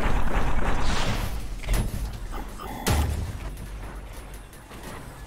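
Gunshots ring out in a video game.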